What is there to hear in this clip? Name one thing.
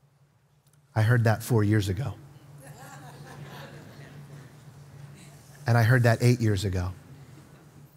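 A man speaks through a microphone in a large hall, in short bursts with pauses.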